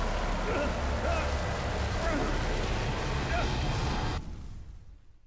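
A fire roars with a low rumble.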